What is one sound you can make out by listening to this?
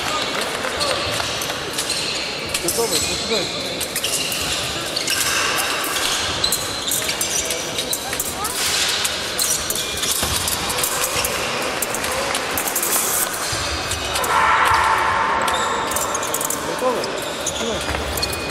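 Shoes squeak and thud on a hard floor in a large echoing hall.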